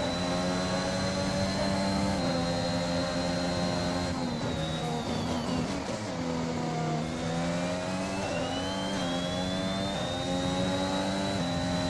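A racing car engine screams at high revs, dropping in pitch through gear changes and braking, then rising again.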